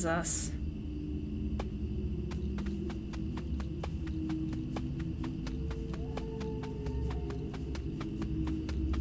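Quick, light footsteps patter on soft ground.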